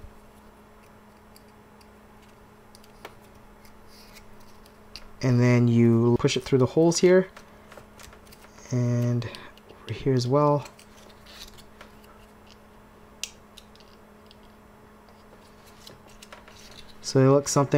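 Small plastic parts click and rattle softly as hands handle them.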